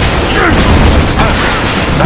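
A loud explosion bursts.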